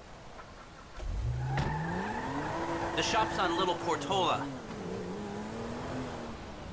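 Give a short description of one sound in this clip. A car engine starts and revs up as the car drives off.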